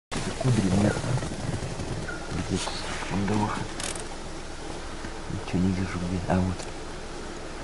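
A man talks in short bursts close by.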